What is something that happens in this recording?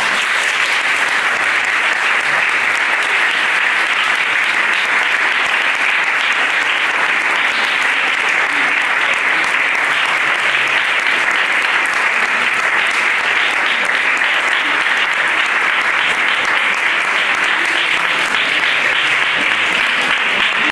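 An audience claps steadily throughout.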